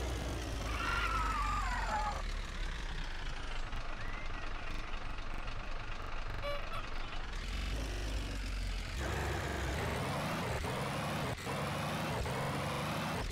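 A small jeep engine hums steadily as it drives.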